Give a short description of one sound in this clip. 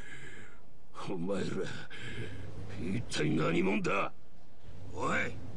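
A man speaks angrily through gritted teeth.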